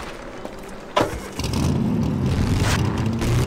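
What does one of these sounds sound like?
A vehicle engine starts and rumbles steadily.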